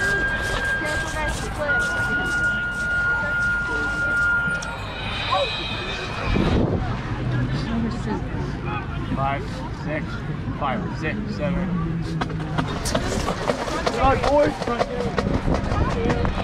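Young band members shout and whoop with excitement close by.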